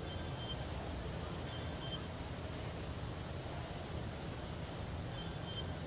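A small drone whirs steadily overhead.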